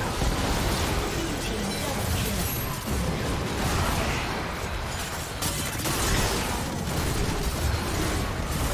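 Game spell effects crackle and boom during a hectic fight.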